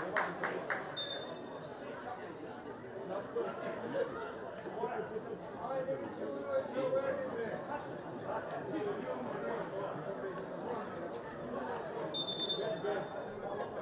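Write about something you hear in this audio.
A referee blows a whistle in short, sharp blasts.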